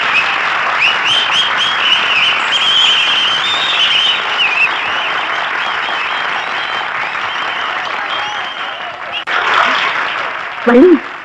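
A large crowd cheers outdoors.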